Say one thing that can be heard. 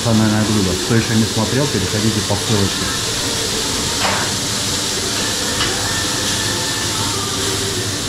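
An extractor fan hums steadily.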